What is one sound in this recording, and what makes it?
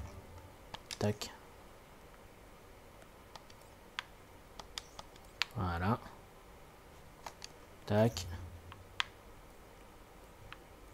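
Soft menu clicks and chimes sound as selections change.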